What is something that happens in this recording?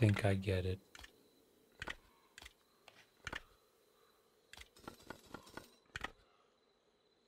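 Metal medallions clink and click as they are swapped and turned.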